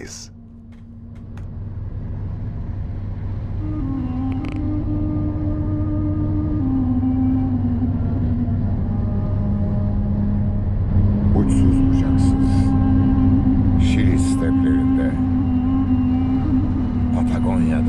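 Tyres rumble on a gravel road.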